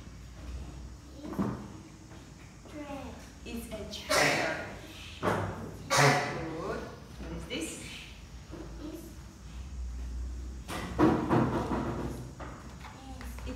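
A young girl answers in a small voice.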